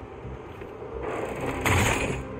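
A metal crate clanks and creaks as it is forced open.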